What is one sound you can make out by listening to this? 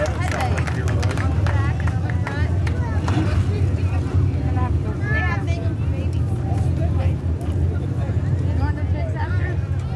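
A race car engine idles with a deep, steady rumble.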